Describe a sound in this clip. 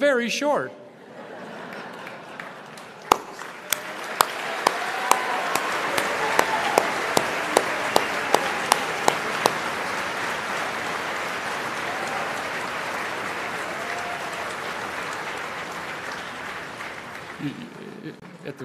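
An elderly man claps his hands.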